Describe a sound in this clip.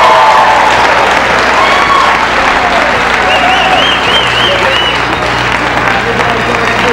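Several people sing and shout loudly together nearby.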